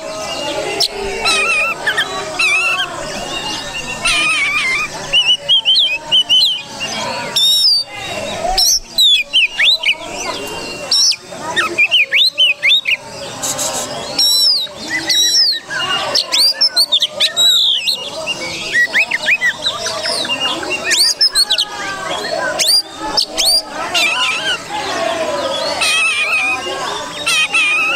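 A songbird sings loud, varied whistles and trills close by.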